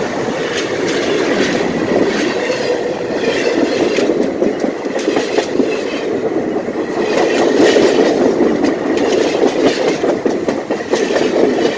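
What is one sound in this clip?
A train rolls slowly overhead, close by, its steel wheels rumbling and squealing on the rails.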